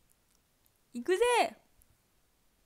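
A young woman lets out a rising and falling exclamation.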